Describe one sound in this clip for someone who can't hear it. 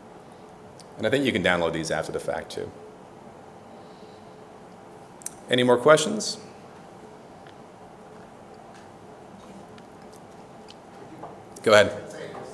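A man speaks into a microphone in short bursts with pauses between them.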